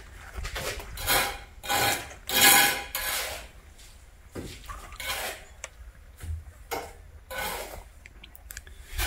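A horse slurps and gulps water from a tub.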